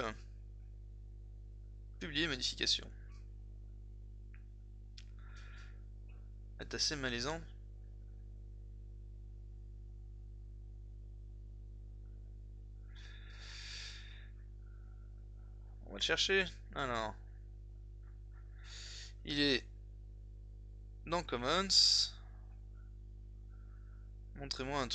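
A man speaks calmly and close into a microphone, in short bursts.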